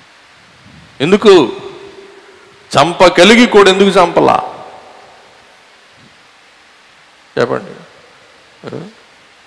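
A middle-aged man speaks with animation, in short bursts, through a microphone.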